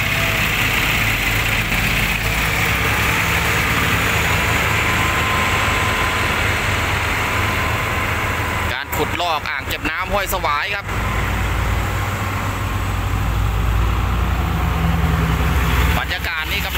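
A diesel hydraulic excavator's engine rumbles under load.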